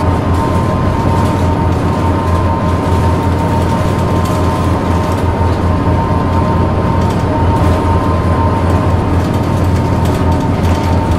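A bus engine hums steadily while driving at speed.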